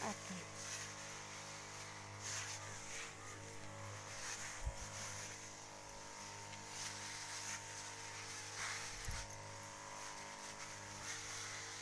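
A motor sprayer hums steadily.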